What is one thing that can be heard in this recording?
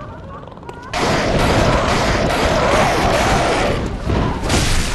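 A creature screeches and flaps its wings.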